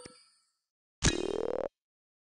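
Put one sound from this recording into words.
A bright reward jingle plays.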